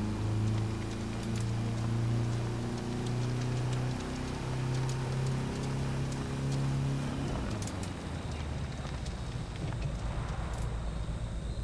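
Tyres crunch over gravel.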